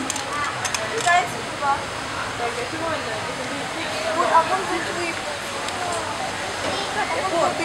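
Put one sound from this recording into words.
Water trickles and splashes steadily into a pool.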